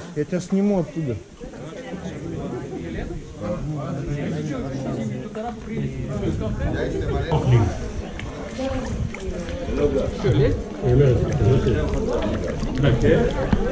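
Water laps and splashes close by.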